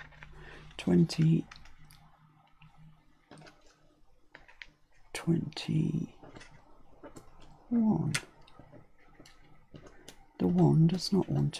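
Paper rustles and taps softly as pieces are moved about.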